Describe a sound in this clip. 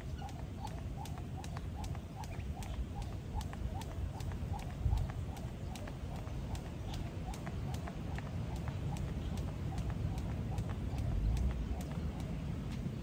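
A jump rope slaps the pavement in a quick, steady rhythm.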